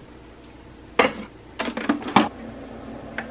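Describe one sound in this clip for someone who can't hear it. A ceramic mug clunks down onto a metal tray.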